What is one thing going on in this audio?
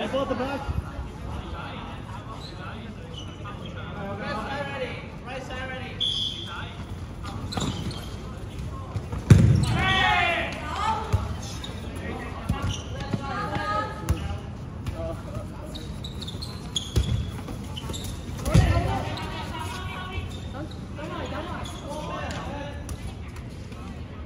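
Young players shout and call out to each other in a large echoing gym.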